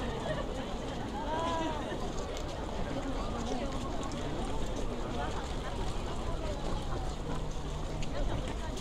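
A crowd of men and women chatters and talks all around outdoors.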